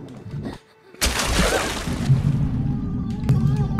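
A body plunges into water with a splash.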